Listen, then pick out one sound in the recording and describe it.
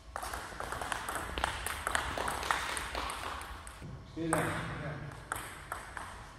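A table tennis ball is struck back and forth with paddles, bouncing on a table, in an echoing hall.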